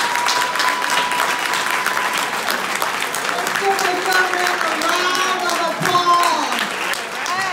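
A crowd claps along in a steady rhythm.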